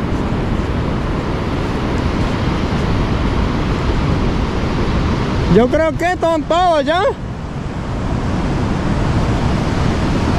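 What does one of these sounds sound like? Waves roll in and wash onto the shore.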